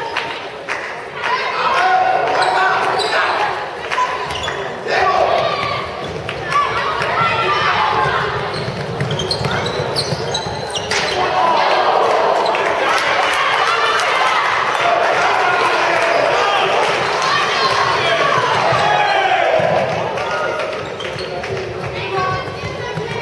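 A handball thuds as it bounces on the floor.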